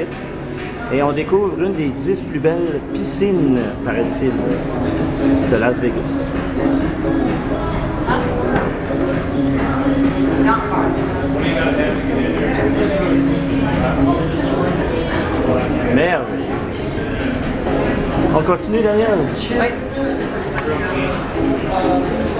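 People chatter nearby in a busy, echoing space.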